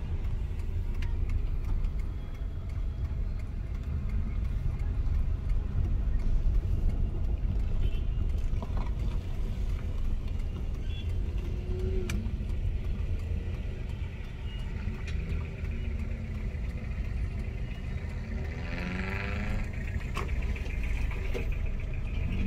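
A car engine hums steadily from inside a moving vehicle.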